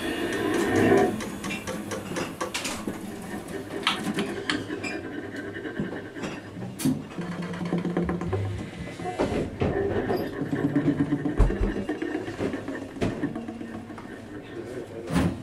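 An alto saxophone plays free jazz.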